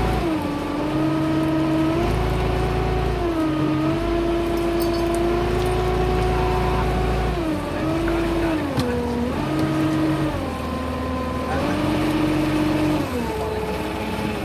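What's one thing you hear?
A boat engine rumbles low and steady.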